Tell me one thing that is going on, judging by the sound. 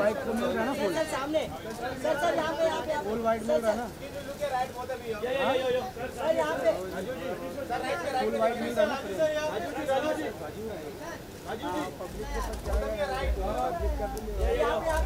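Several men call out and talk over one another nearby.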